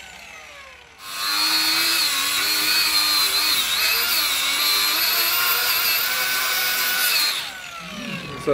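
An angle grinder cuts into metal with a harsh, steady screech.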